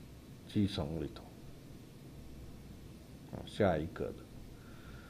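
A man speaks calmly into a microphone in short phrases.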